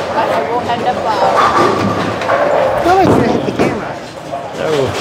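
Men talk and call out nearby in an echoing hall.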